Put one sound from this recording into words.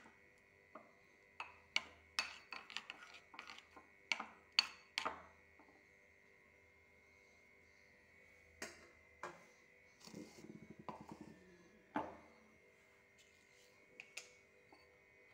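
A spoon clinks and scrapes against a glass bowl.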